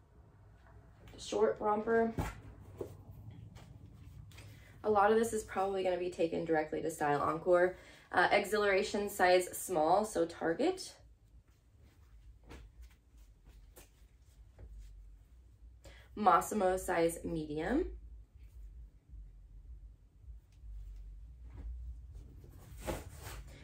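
Fabric rustles as clothes are handled.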